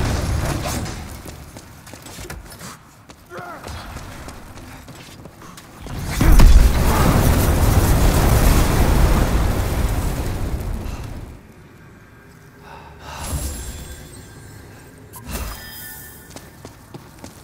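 Footsteps scrape on stone.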